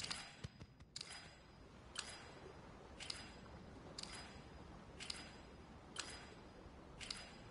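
A game timer ticks once a second.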